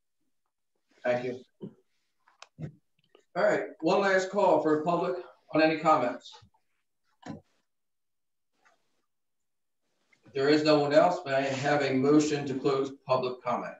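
A man speaks calmly through a microphone in a room with slight echo.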